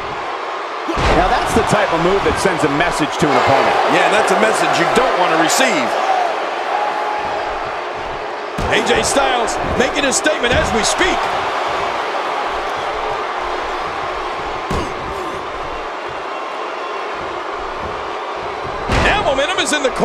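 A body thuds hard onto a wrestling mat.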